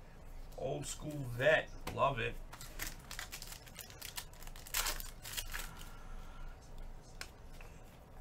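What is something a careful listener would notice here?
Plastic wrapping crinkles and rustles as hands handle it.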